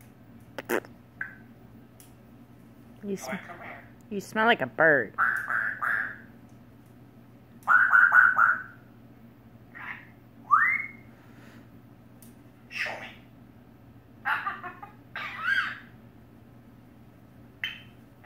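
A parrot flaps its wings.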